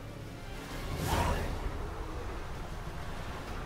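Thunder cracks and rumbles loudly.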